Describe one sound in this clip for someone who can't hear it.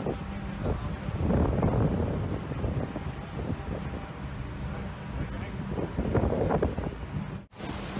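Wind buffets in gusts outdoors.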